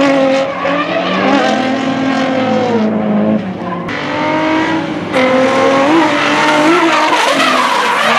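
Tyres screech as cars slide.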